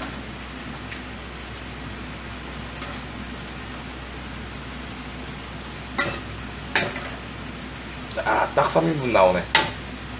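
Food splashes as it is ladled into a bowl.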